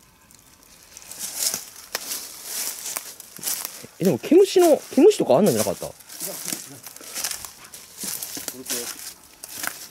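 Footsteps crunch through dry leaves on the ground.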